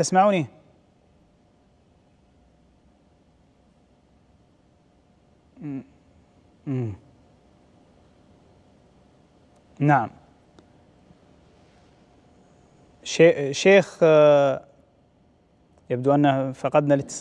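A young man chants in a slow, melodic voice into a close microphone, pausing between phrases.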